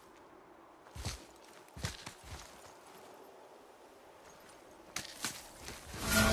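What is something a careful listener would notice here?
A climber's hands thump and scrape against rock.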